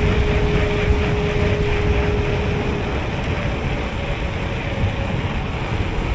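Bicycle tyres hum on smooth pavement.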